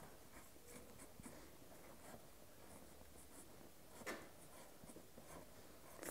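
A felt-tip marker scratches softly on fabric.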